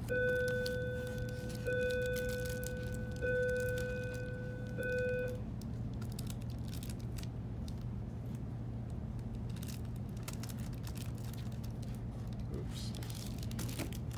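Hands rustle and fold paper around a book.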